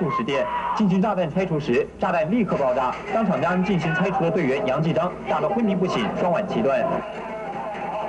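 A man shouts excitedly, heard through a television speaker.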